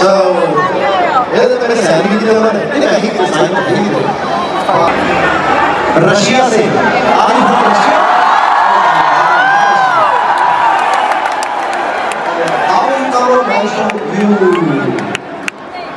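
A large crowd cheers and sings along.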